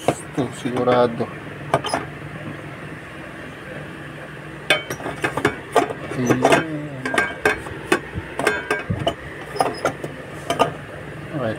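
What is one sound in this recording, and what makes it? A metal fork scrapes and clinks against a metal pot.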